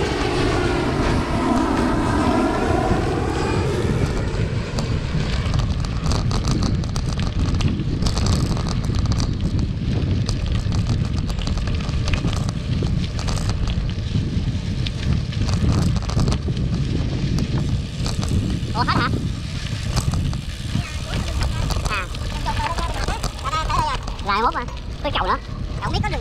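Bicycle tyres roll over a rough dirt path.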